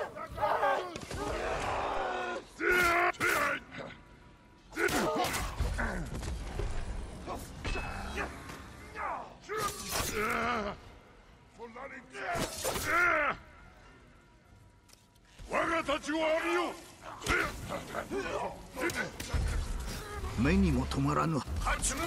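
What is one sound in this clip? Magic bursts crackle and whoosh.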